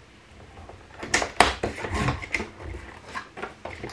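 A paper trimmer blade slides and cuts through card.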